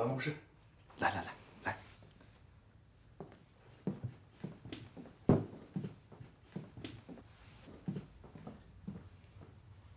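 Footsteps sound on a hard floor.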